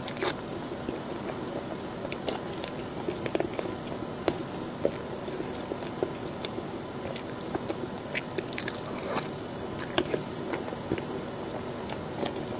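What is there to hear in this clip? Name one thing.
A metal fork scrapes and taps against a plate.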